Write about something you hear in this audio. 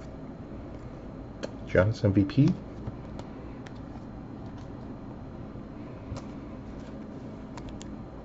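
Plastic-sleeved cards click and rustle as hands handle them.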